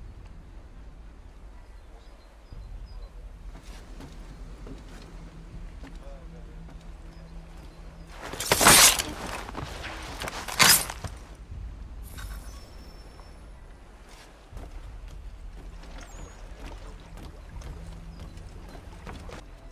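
Footsteps thud softly on wooden planks.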